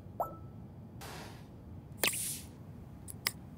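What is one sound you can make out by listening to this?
A short game chime sounds as a notice pops up.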